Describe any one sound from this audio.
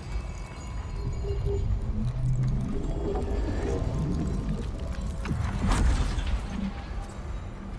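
A small droid beeps and chirps.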